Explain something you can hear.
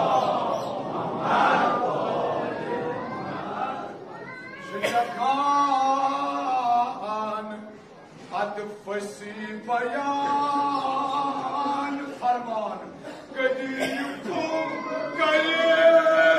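A man chants a lament through a loudspeaker in a large echoing hall.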